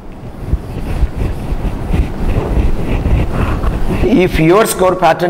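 A cloth duster rubs and wipes across a whiteboard.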